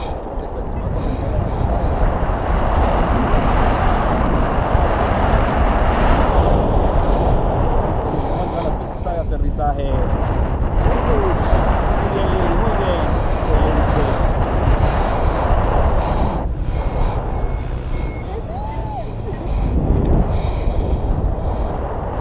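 Strong wind rushes and buffets loudly throughout.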